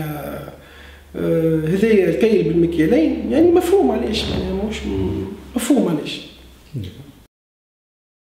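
A man speaks calmly and earnestly into a nearby microphone.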